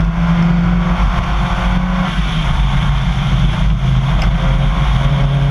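A rally car engine roars at speed under load.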